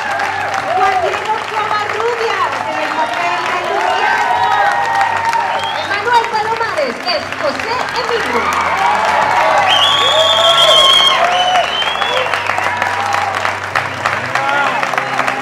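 A crowd cheers and shouts excitedly.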